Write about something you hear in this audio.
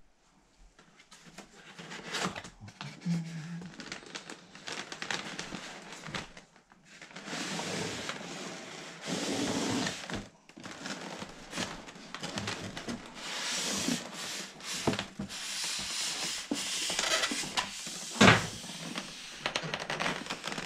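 A cardboard box scrapes and rustles as hands handle it.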